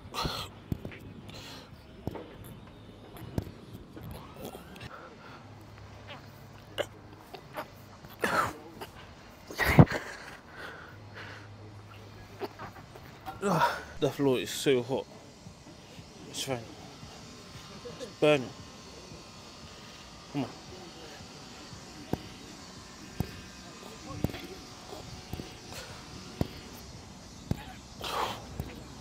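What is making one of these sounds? A man breathes hard while exercising.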